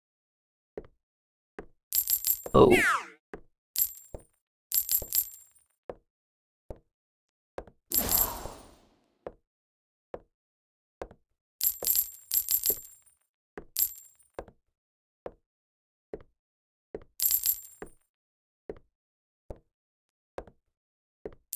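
Footsteps tap at a steady pace.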